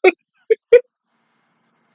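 A young woman laughs briefly close to a microphone.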